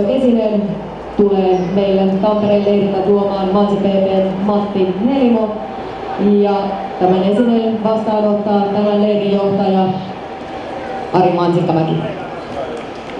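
A young girl sings through a loudspeaker outdoors, holding long notes.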